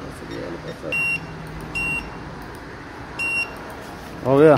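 A card machine beeps in short tones.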